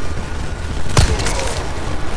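A gunshot cracks once.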